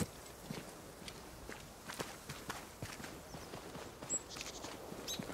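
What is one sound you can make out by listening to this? Footsteps crunch on dry grass and earth at a steady pace.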